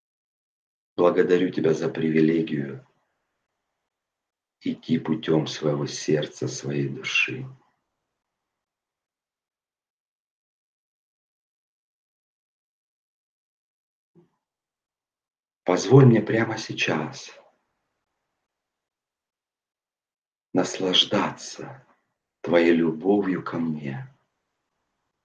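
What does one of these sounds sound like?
A middle-aged man speaks with animation into a microphone, in bursts with long pauses.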